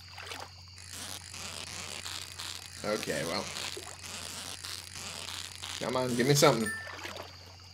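A fishing reel clicks and whirs as a fish is reeled in.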